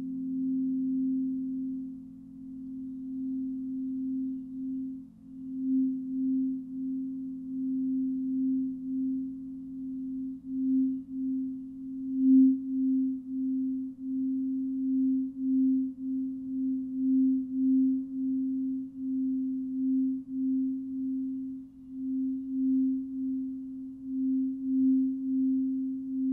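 Crystal singing bowls ring with a low, steady, pulsing hum.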